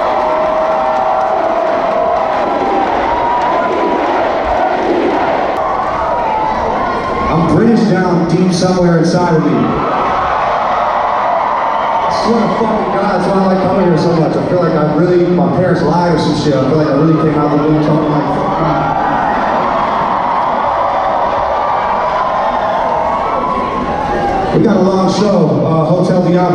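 A singer's voice carries through loudspeakers.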